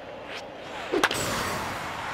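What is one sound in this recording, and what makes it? A bat cracks sharply against a baseball.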